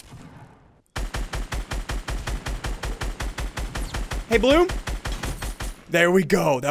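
Gunshots fire in rapid, steady bursts.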